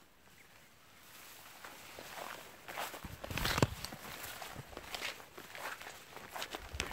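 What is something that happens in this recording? Dry grass rustles and crunches underfoot.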